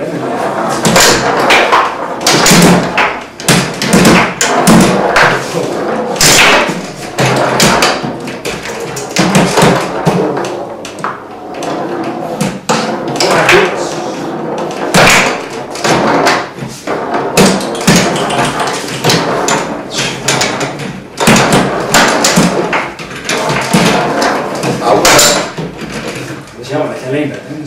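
Table football rods spin and rattle as players play.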